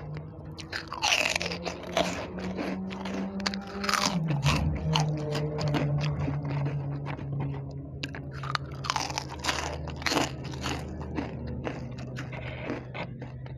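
A woman crunches crisp snacks loudly and close by.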